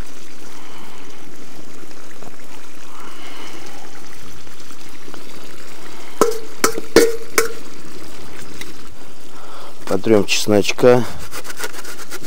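A pot of stew bubbles and simmers.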